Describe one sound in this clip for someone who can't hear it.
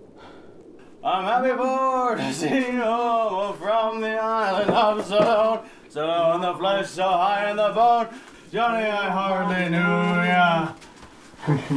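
A young man sings loudly and unsteadily, close by.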